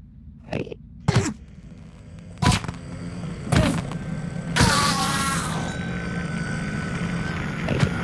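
Blows from a weapon strike a creature with sharp hits.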